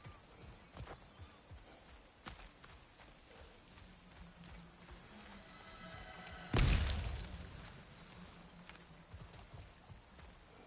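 Heavy footsteps crunch over dirt and stone.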